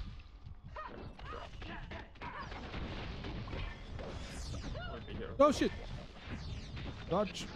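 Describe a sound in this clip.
Sword slashes whoosh and strike repeatedly.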